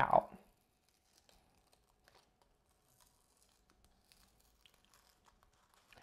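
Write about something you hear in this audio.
Tape crinkles and peels softly off a ceramic mug.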